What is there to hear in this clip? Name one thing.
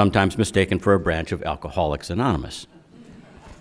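An elderly man speaks steadily into a microphone.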